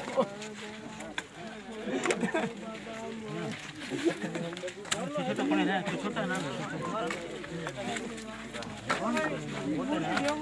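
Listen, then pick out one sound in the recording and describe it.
A crowd of men talk and call out loudly all at once, outdoors.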